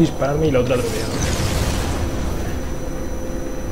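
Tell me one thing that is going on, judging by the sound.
A blast bursts with a roaring whoosh.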